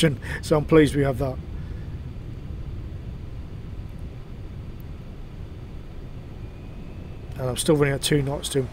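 A submarine's engine hums low and steady underwater.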